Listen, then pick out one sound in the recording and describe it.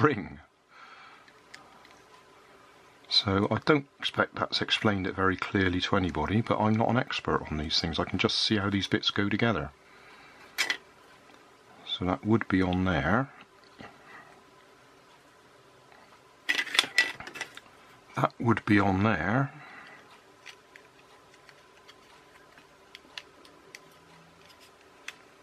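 Small plastic gears and parts click and rattle as they are handled.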